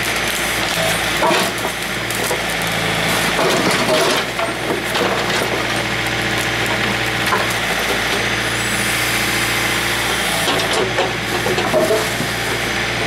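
Wooden planks knock and scrape.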